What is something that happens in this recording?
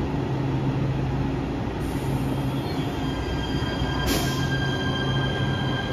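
An electric train hums and whines as it slowly pulls away.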